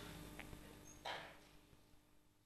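A woman speaks briefly into a microphone.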